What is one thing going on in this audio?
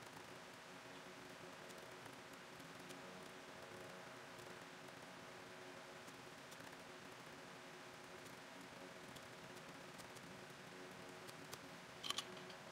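Fingers tap quickly on a laptop keyboard.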